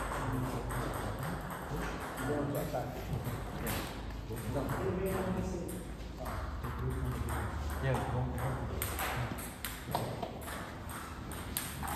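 Table tennis balls click sharply off paddles and tables in an echoing hall.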